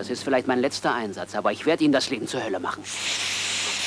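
A man speaks tensely up close.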